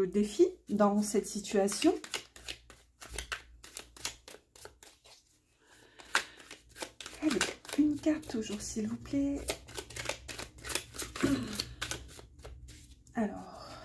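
Playing cards riffle and flick as they are shuffled by hand.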